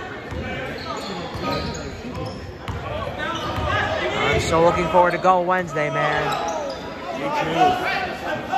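A crowd of spectators talks and cheers loudly in a large echoing gym.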